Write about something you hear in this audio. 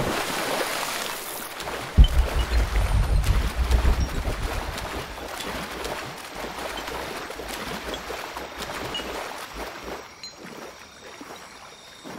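Water sloshes and ripples as someone swims and wades through it.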